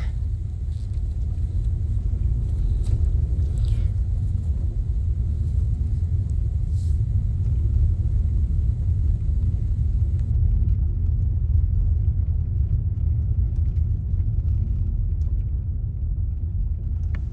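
Tyres rumble and crunch over a bumpy dirt road.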